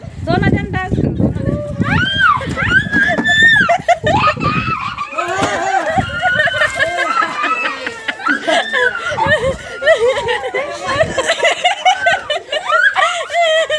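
Men shout loudly and excitedly close by.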